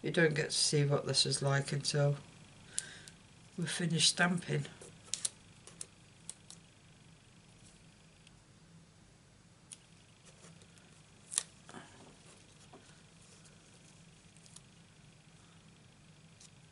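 Card stock rustles and taps as hands handle it.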